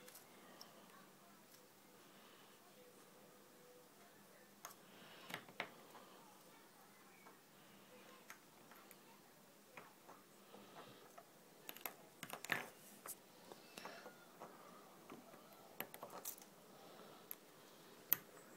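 Fingers crinkle and tear thin plastic pieces close by.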